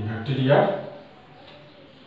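A man speaks loudly and clearly close by.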